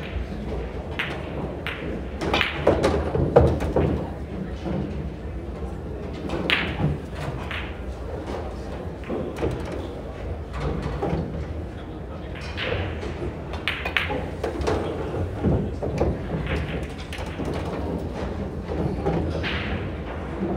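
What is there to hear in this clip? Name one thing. Pool balls click sharply against each other and knock into the cushions.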